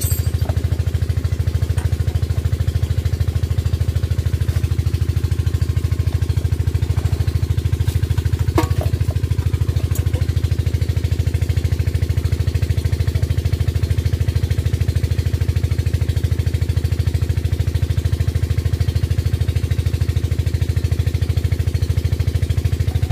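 An old single-cylinder engine chugs steadily and loudly close by.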